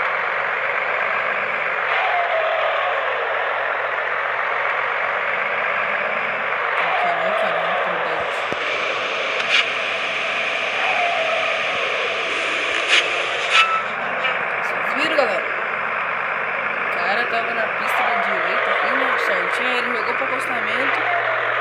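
A truck engine drones steadily.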